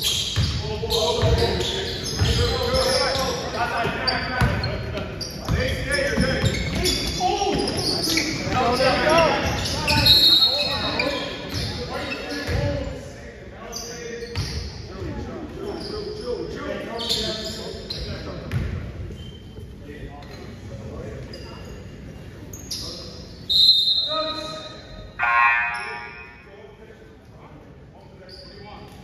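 Spectators and players shout and chatter around the court.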